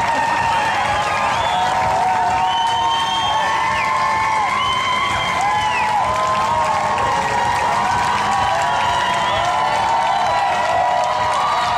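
Spectators whistle shrilly and repeatedly.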